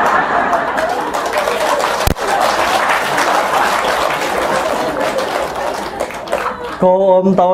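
A crowd laughs and chatters in a large room.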